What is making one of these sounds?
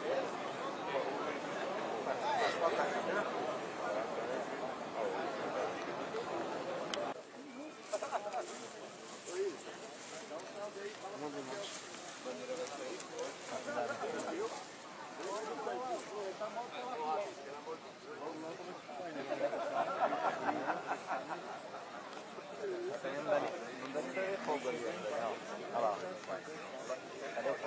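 A crowd of men and women chatter and call out nearby outdoors.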